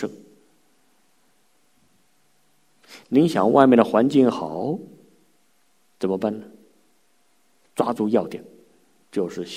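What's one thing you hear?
A middle-aged man speaks calmly into a microphone, with short pauses.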